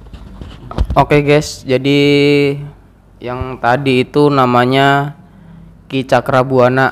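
A man chants a prayer aloud in a long, drawn-out voice.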